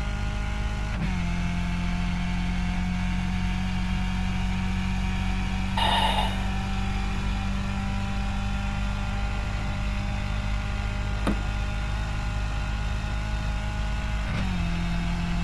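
A racing car engine's pitch drops suddenly as it shifts up a gear.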